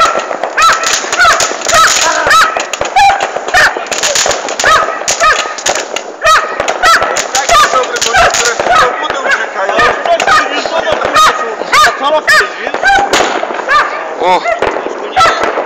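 Fireworks whistle shrilly as they shoot upward.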